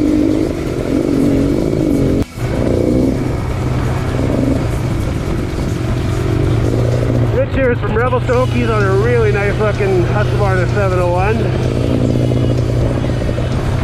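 A dirt bike engine hums and revs close by.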